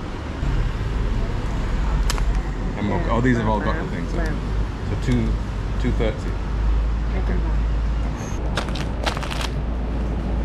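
Foil packets crinkle and rustle as they are handled.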